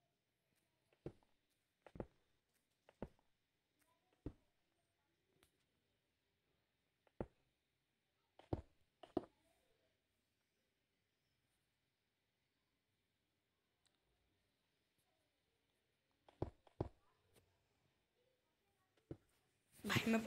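Blocks are placed and broken with short soft thuds.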